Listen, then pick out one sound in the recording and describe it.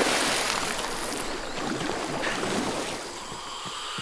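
Water sloshes as a swimmer moves through it.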